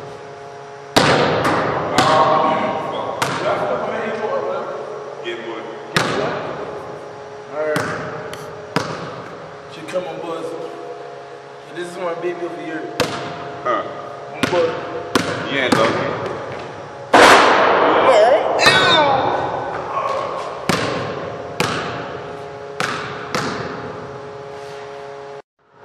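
A basketball bounces on a hard floor, echoing in a large hall.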